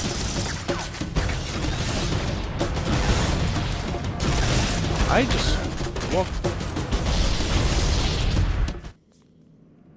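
Gunfire and explosions from a video game crackle loudly.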